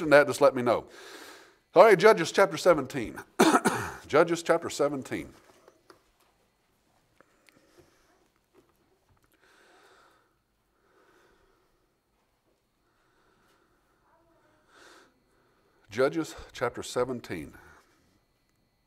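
An older man speaks firmly into a microphone, with long pauses.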